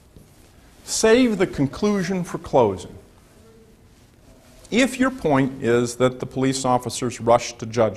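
A man speaks clearly to a room in a lecturing tone.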